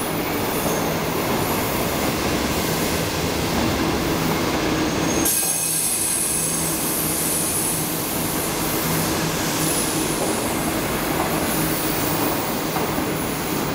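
A train rumbles past at speed, wheels clattering on the rails.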